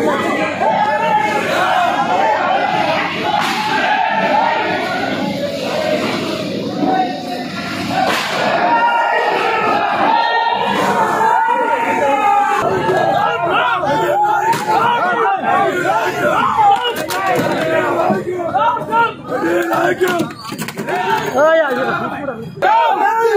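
A large crowd of men shouts and cheers loudly and excitedly nearby.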